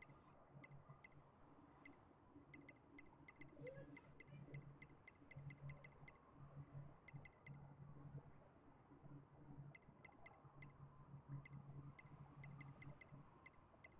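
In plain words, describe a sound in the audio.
Menu sounds tick in quick bursts as selections scroll.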